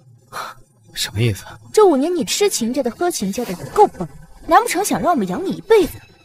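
A young woman speaks coolly and close by.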